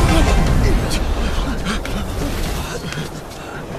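A deep rumbling whoosh rolls through outdoors and fades.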